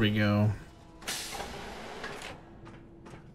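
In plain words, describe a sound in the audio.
Elevator doors slide open with a hiss.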